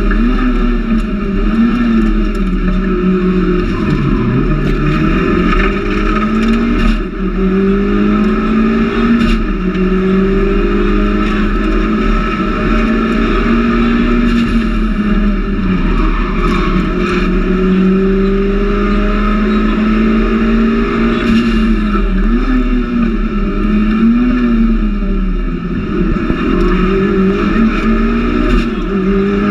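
A turbocharged four-cylinder rally car engine revs hard from inside the cabin, climbing and falling through gear changes.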